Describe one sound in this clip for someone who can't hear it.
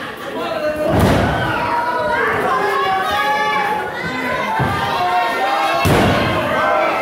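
A body slams heavily onto a wrestling ring mat with a booming thud.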